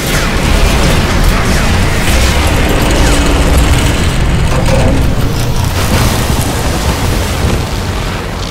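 Deep explosions rumble.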